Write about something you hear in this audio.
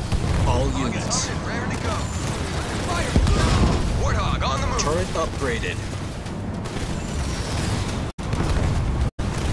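Gunfire and explosions crackle and boom in a battle.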